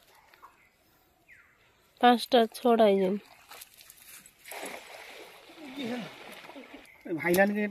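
A cast net rustles as fish are picked from it.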